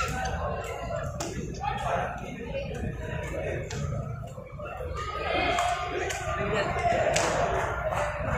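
Men clap their hands.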